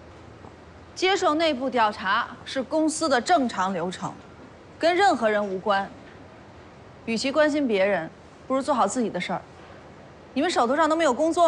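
A woman speaks firmly and sharply, close by.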